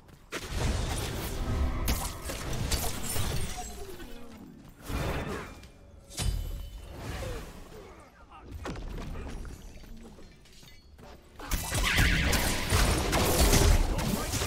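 Magic blasts crackle and burst loudly.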